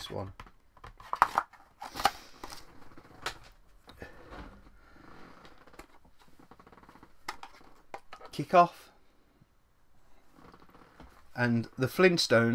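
A plastic game cartridge clicks and rattles in a man's hands.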